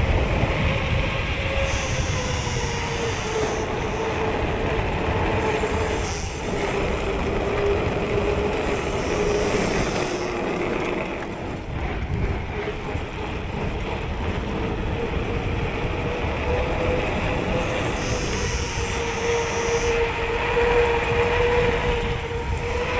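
Wind rushes loudly past a fast-moving bicycle rider outdoors.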